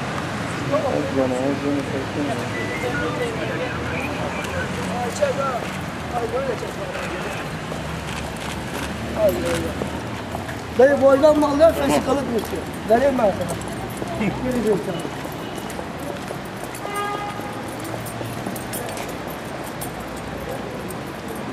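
Footsteps tread on wet pavement.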